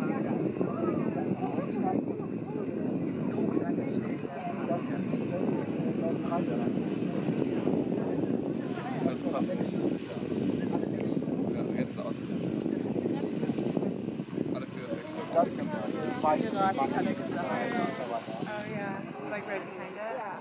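A geyser erupts and splashes water into its pool.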